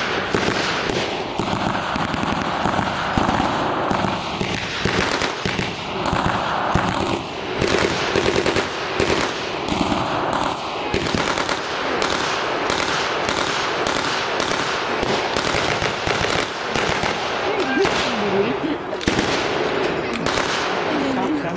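Rifles fire sharp shots in rapid bursts.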